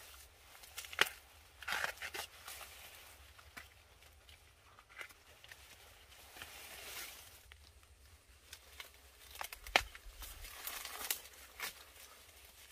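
Corn ears snap off the stalks.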